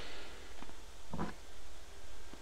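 A wooden wardrobe door clatters open.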